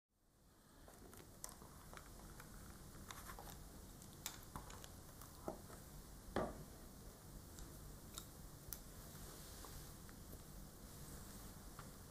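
A man whispers softly, very close to a microphone.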